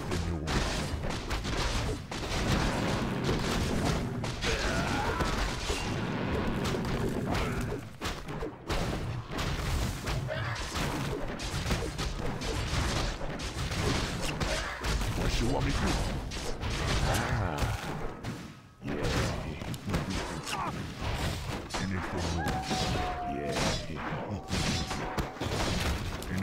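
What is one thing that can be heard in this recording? Swords clash and strike in a battle.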